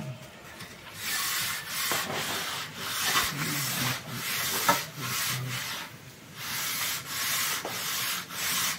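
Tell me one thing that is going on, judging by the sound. A metal float scrapes along wet cement.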